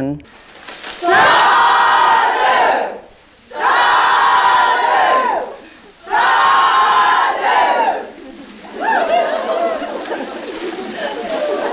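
A group of women chant together in long, loud phrases.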